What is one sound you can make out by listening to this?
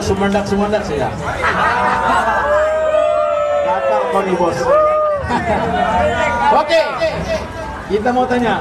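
Acoustic guitars strum along.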